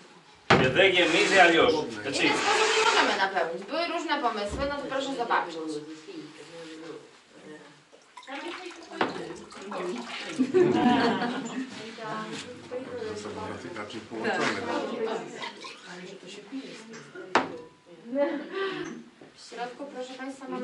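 Pottery clinks as a man handles it.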